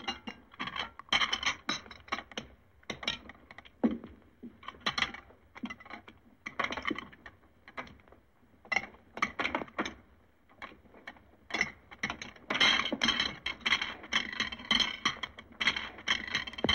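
Cutlery clinks and scrapes against plates.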